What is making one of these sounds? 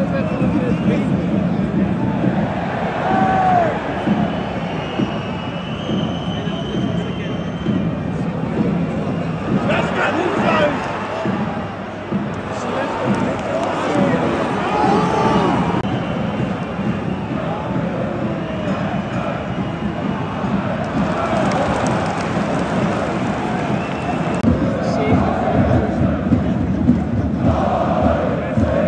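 A large stadium crowd roars and chatters steadily outdoors.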